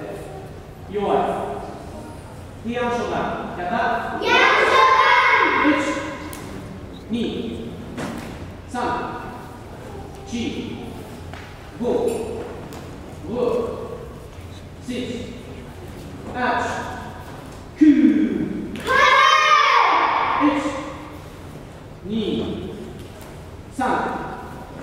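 A group of young children shout sharply together in an echoing hall.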